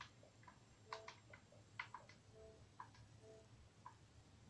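Soft menu beeps sound from a television as options are selected.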